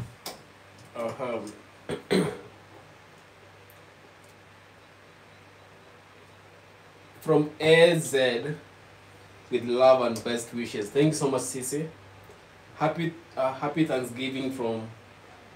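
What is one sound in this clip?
A man speaks close by, calmly and in short bursts.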